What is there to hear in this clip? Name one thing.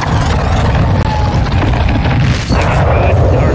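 An explosion blasts with a deep roar.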